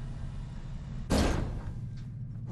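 Elevator doors slide open with a thud.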